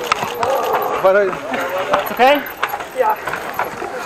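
A mountain bike rattles over rough dirt.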